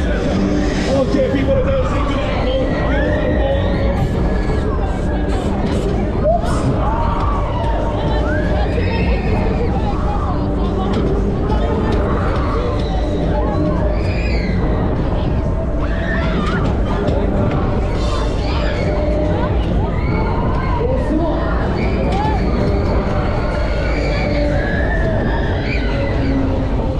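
Pop music booms from loudspeakers nearby.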